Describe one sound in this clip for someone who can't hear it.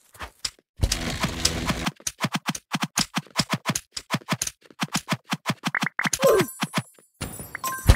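Rapid sword hits thud and clack in a video game.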